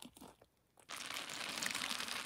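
Hands squeeze a wet sponge with a squelch.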